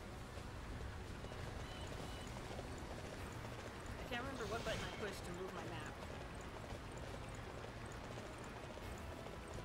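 A horse's hooves gallop and thud steadily over dirt.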